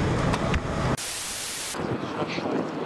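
Static hisses loudly for a moment.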